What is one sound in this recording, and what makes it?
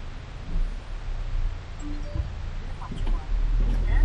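An oncoming car passes by.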